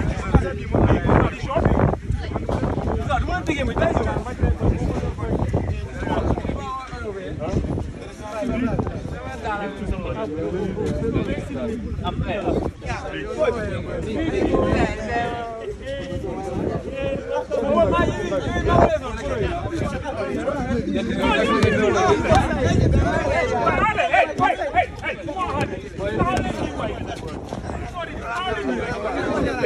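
A crowd of boys and young men talks and calls out at once outdoors.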